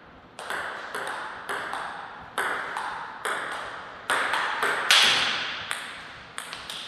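Table tennis ball clicks sharply off paddles and a table in a quick, steady rally, echoing in a large hall.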